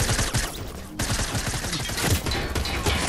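A rifle fires a burst of rapid shots.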